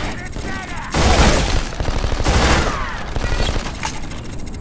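A rifle fires loud, rapid bursts.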